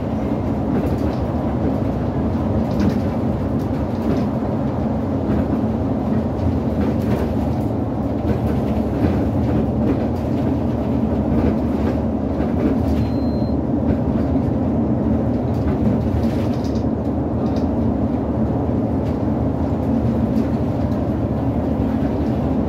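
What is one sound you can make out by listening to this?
The bus body rattles and clicks over the road.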